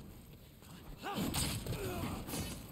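A fiery blast bursts and crackles.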